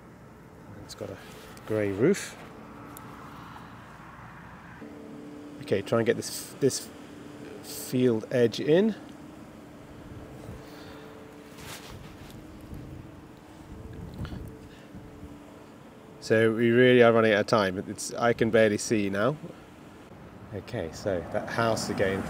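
A man talks calmly nearby, in short bursts with pauses.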